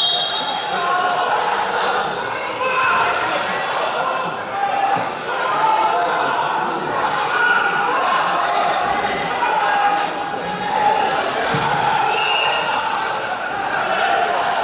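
Feet shuffle softly on a wrestling mat.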